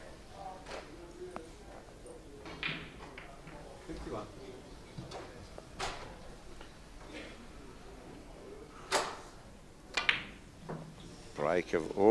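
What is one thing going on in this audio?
Billiard balls click sharply together.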